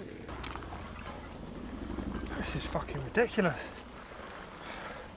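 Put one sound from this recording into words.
Bicycle tyres roll over a grassy dirt trail.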